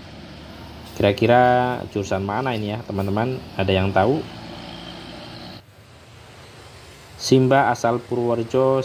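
A bus horn plays a loud, wavering melody.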